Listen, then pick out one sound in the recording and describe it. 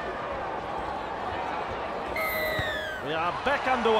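A boot thumps a ball in a kick.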